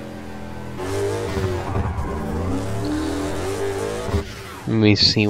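Tyres screech as a car skids sideways.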